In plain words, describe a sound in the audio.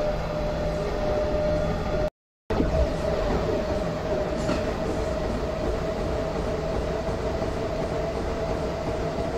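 A subway train rumbles and hums steadily along the tracks.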